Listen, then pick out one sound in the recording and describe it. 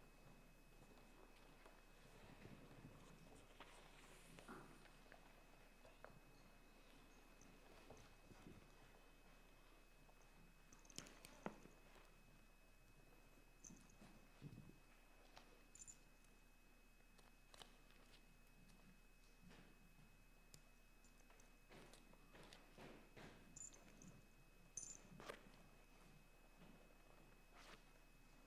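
People shuffle and step softly across a wooden floor in a large echoing hall.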